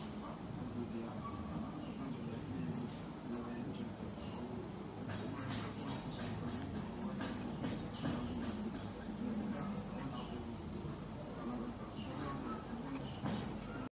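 A woman speaks calmly into a microphone over an online call.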